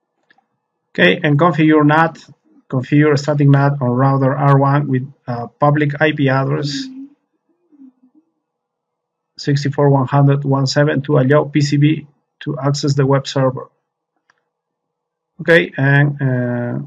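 A man speaks calmly and explains into a close microphone.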